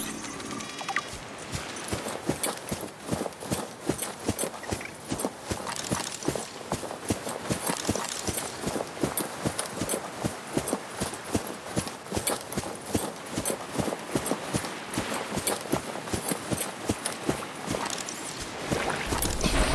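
Quick footsteps crunch on sand.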